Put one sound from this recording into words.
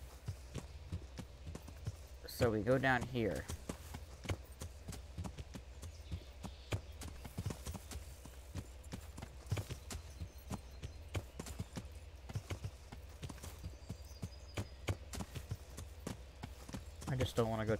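A horse's hooves thud steadily along a dirt path.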